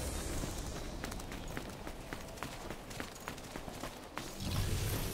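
Footsteps crunch on gravel and stone.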